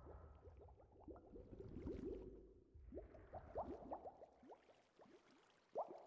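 Water bubbles and gurgles.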